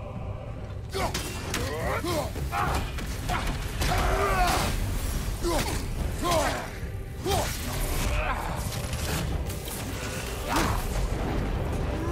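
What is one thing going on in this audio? Heavy blows thud and clash in a fight.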